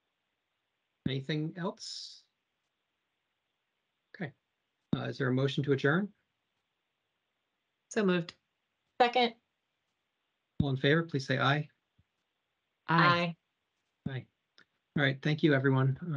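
A man speaks calmly over an online call, in short phrases with pauses.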